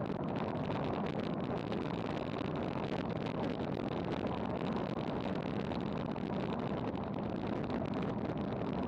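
Wind rushes loudly and steadily past.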